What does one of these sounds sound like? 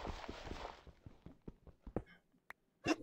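A pickaxe chips at stone in quick, repeated knocks.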